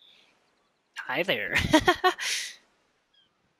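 A young boy speaks briefly.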